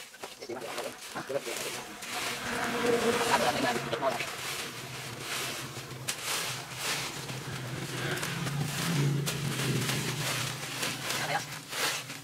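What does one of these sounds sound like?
Rakes scrape and rustle through dry palm fronds and leaves.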